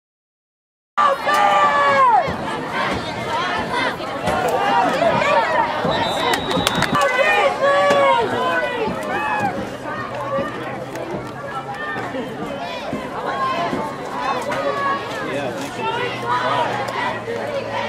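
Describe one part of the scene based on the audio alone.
Young players and spectators shout and cheer outdoors.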